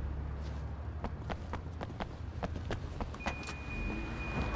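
Footsteps run quickly on a wet pavement.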